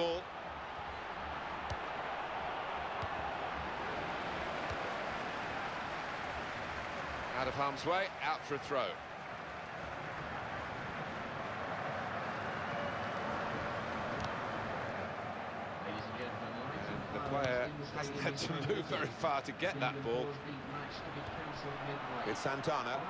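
A large crowd murmurs and cheers steadily in a stadium.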